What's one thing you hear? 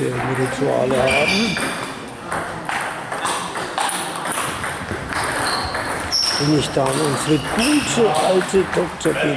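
Men talk nearby in a large echoing hall.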